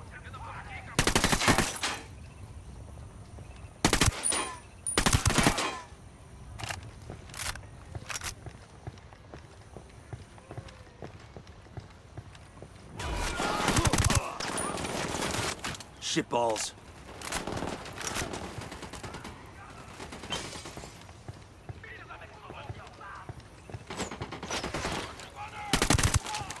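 A rifle fires in short, loud bursts.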